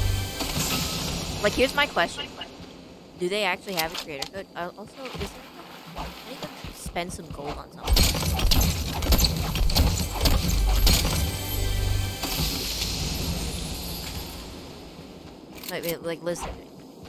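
A treasure chest opens with a bright jingling chime.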